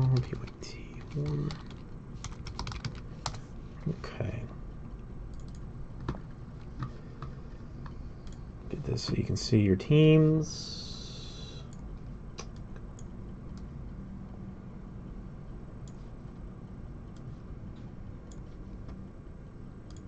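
Fingers tap keys on a computer keyboard.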